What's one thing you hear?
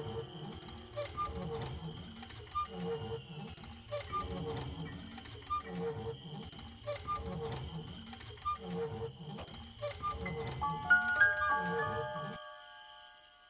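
A wooden well crank creaks in a steady rhythm as a bucket is wound up.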